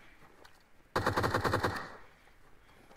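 A rifle fires a short, rapid burst of shots.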